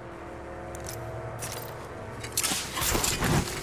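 A grenade is thrown with a whoosh.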